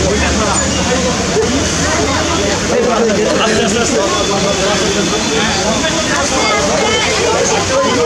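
A crowd of people murmurs and talks nearby.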